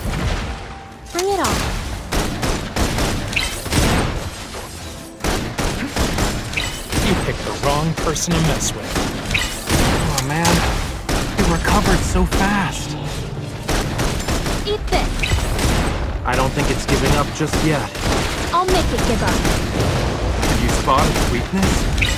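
Sword strikes and magic blasts hit hard in quick bursts.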